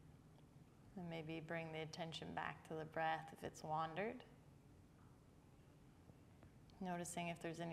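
A woman speaks calmly and softly, close to a microphone.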